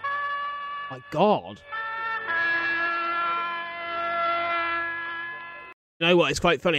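A man sings long, held notes close to a microphone.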